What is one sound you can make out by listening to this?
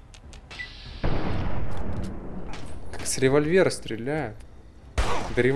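Gunshots crack and boom loudly.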